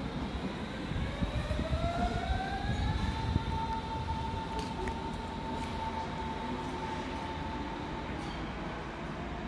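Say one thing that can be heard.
A train's electric motor whines, rising in pitch and then holding steady.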